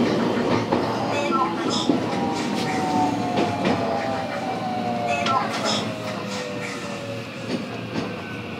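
Train brakes squeal as the train slows down.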